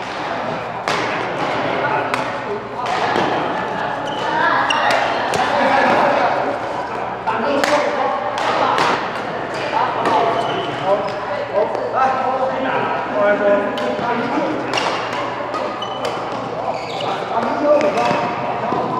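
Men talk and call out in the background.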